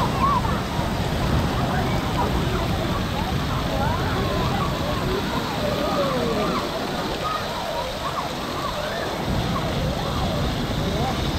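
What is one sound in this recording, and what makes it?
Water splashes and pours down steadily all around.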